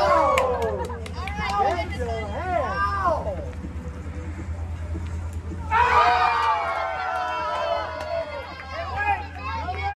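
A group of men and women cheer and shout outdoors.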